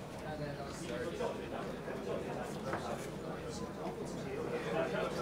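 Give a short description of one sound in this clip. Many men and women talk over one another in a crowded room, a busy murmur of voices.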